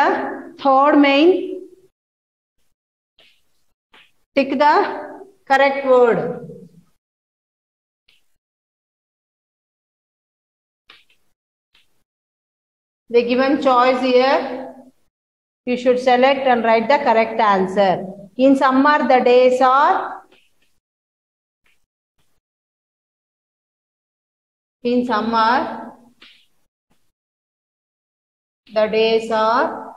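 A woman speaks clearly and slowly, as if teaching, close by.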